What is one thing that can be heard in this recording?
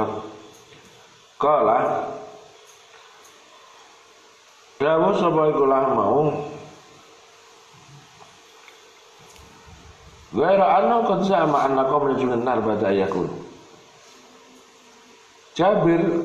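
An elderly man chants in phrases through a microphone, with pauses between them.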